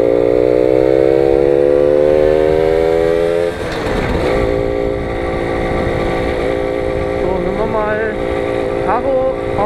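A small scooter engine hums steadily, rising slightly in pitch and then dropping lower.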